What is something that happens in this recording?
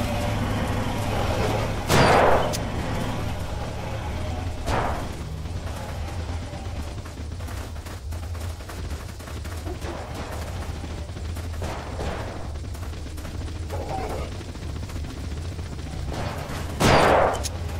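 Footsteps crunch over gravel and grass outdoors.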